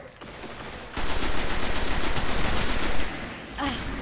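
A rifle fires in a rapid burst of shots.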